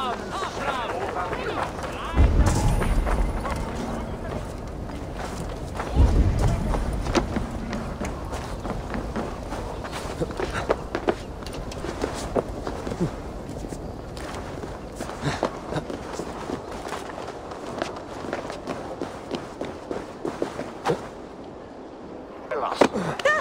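Quick footsteps run over stone and earth.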